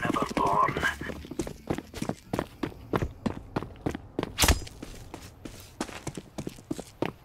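Footsteps run quickly over hard stone ground.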